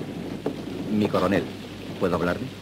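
A man talks in a low voice.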